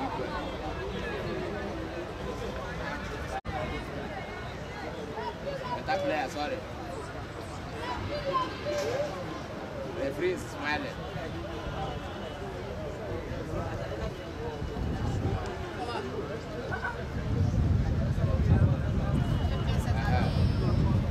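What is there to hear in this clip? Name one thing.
Several young men talk and call out nearby.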